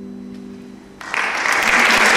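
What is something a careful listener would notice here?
A harp chord rings out and fades.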